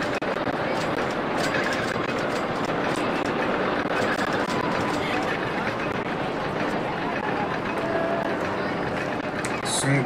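A roller coaster train rattles along a wooden track.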